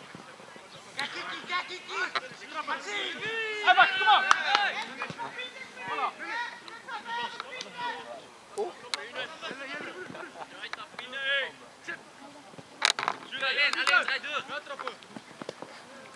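Teenage boys shout and call out to each other across an open field.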